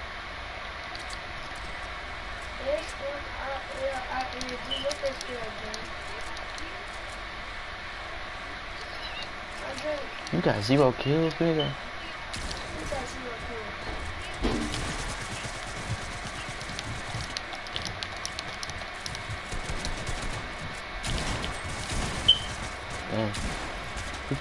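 Quick clacks of building pieces snapping into place sound in a game.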